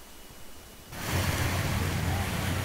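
People murmur quietly outdoors.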